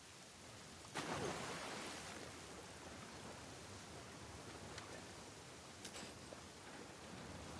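Footsteps splash through deep water.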